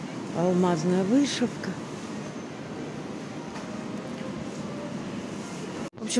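Shoppers murmur faintly in a large echoing hall.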